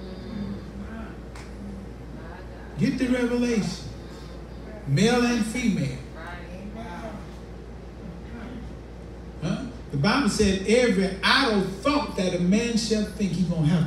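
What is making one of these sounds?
An elderly man preaches with animation through a microphone and loudspeaker in an echoing room.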